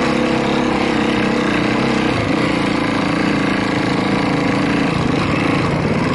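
Another dirt bike engine buzzes nearby.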